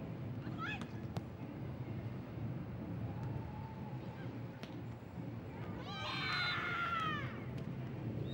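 Young women shout out on an open-air court.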